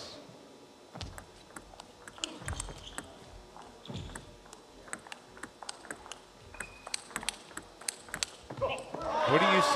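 A ping pong ball clicks back and forth in a quick rally, echoing in a large hall.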